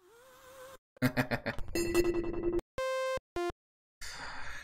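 Synthesizer notes play in short bursts.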